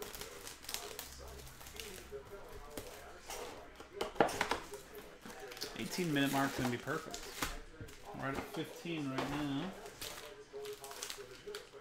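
Foil card packs crinkle and rustle as hands handle them.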